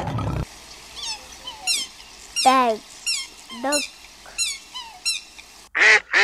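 A goose honks repeatedly.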